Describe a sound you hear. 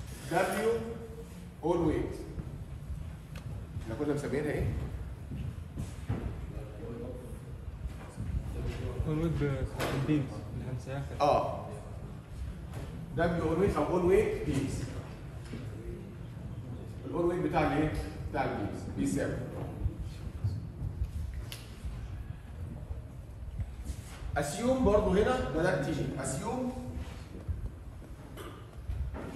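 A man lectures, speaking calmly and clearly.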